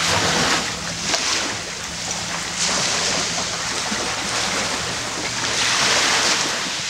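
Small waves wash onto a sandy shore in repeated surges.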